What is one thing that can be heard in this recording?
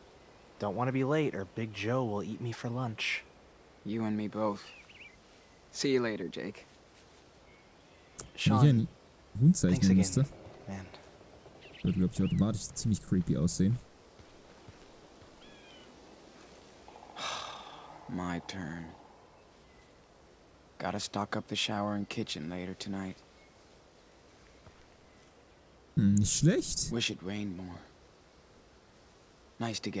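A young man talks calmly into a close microphone.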